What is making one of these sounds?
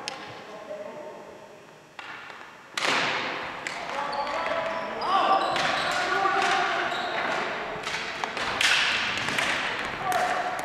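Ball hockey sticks clack on a hard floor in an echoing gym.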